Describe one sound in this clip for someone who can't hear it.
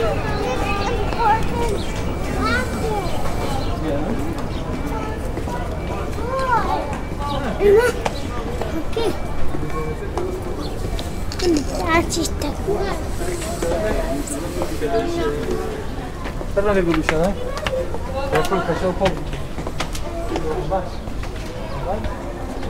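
Several adults and children talk nearby outdoors.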